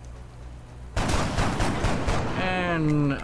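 A rifle fires in a loud burst.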